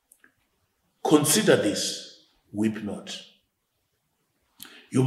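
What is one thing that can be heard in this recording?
An older man speaks calmly and clearly into a close microphone.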